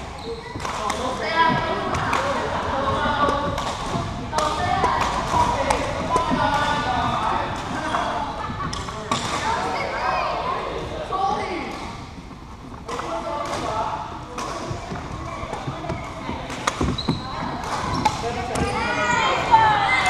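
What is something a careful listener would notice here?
Sneakers squeak on a wooden floor in a large echoing hall.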